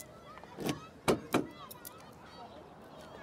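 A metal gate clanks.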